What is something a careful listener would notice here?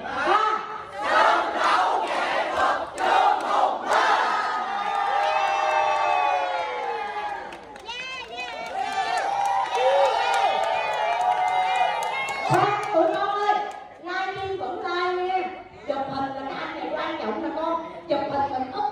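A crowd claps hands in rhythm.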